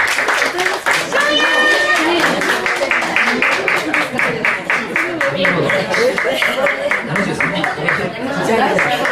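A group of people clap in a steady rhythm.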